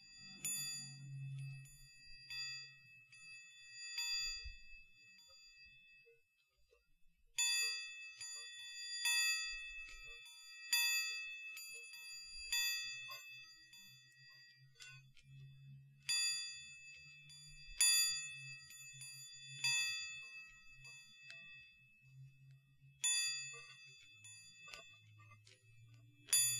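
Small metal chimes ring in bright, repeated strikes close to a microphone.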